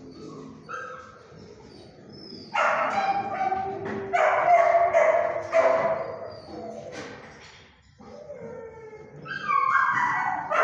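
A dog whines and yelps in high, wavering cries.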